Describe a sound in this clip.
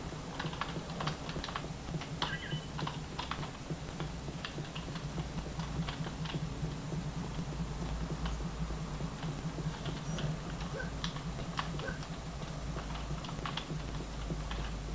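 Keys on a keyboard click and clatter rapidly.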